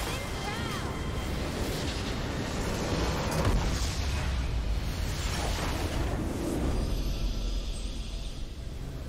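Magic blasts crackle and explode in a loud, busy burst.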